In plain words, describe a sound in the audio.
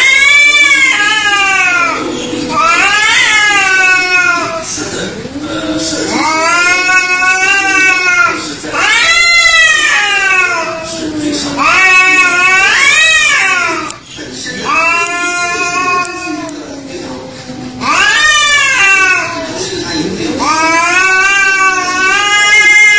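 Two cats yowl and growl at each other in long, wavering howls.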